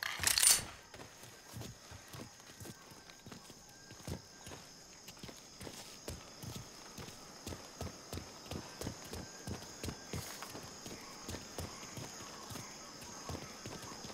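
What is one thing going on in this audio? Footsteps crunch quickly on a dirt path, then on hard ground.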